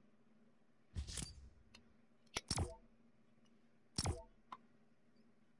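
A game menu button clicks with short electronic chimes.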